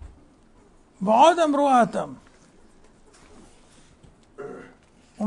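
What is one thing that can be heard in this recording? An elderly man speaks calmly and slowly into a microphone, close by.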